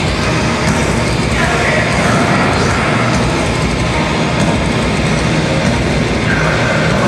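Loud distorted band music plays live in a large hall.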